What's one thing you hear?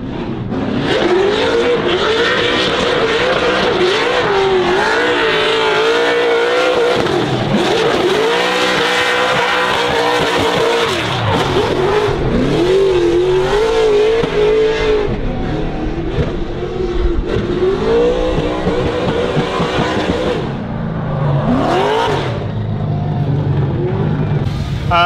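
A car engine roars loudly, revving up and down as it drifts.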